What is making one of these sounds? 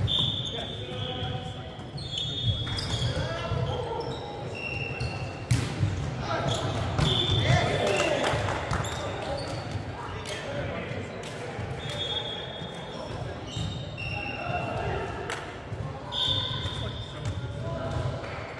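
Shoes squeak sharply on a hard floor.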